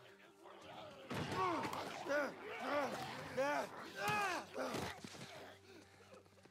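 A man grunts and shouts while struggling.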